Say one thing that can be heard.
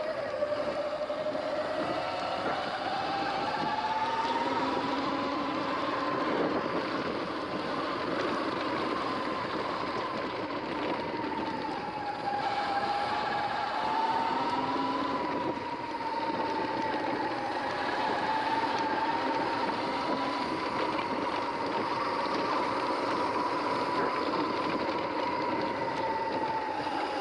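An electric bike motor whines steadily, its pitch rising and falling with speed.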